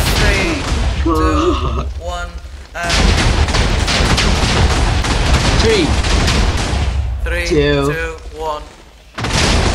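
A teenage boy talks excitedly into a microphone.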